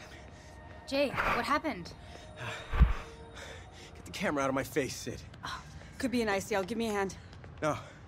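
A man groans and speaks weakly, close by.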